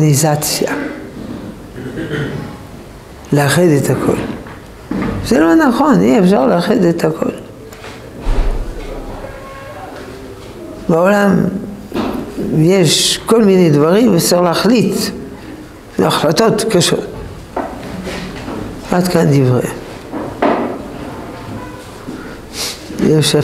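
An elderly man speaks calmly and expressively into a nearby microphone.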